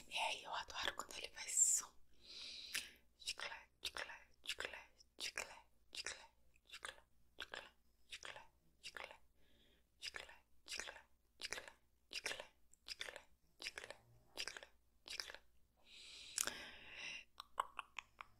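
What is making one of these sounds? A young woman whispers close to the microphone.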